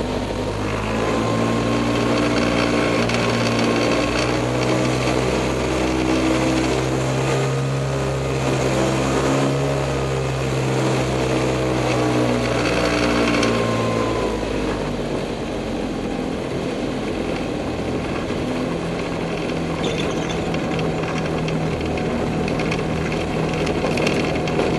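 Wind rushes past the open cockpit.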